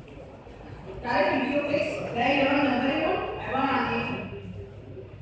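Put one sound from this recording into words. A woman speaks calmly and clearly, as if teaching.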